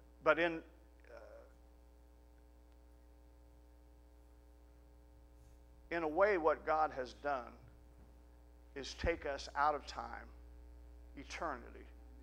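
A middle-aged man speaks slowly and with pauses through a microphone in a reverberant hall.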